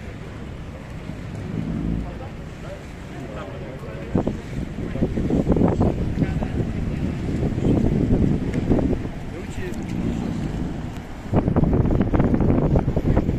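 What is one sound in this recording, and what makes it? Choppy water splashes and churns against a moving boat.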